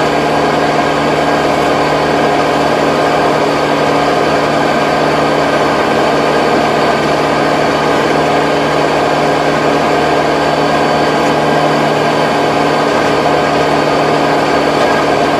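A rotary tiller churns and rattles through soil.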